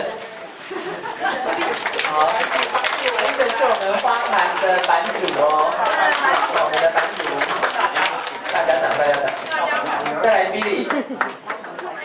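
A crowd of men and women sing together in a room.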